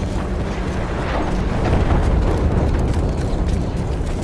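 Loud explosions boom and rumble nearby.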